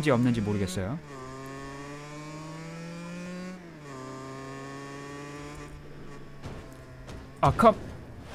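A scooter engine hums steadily and rises in pitch.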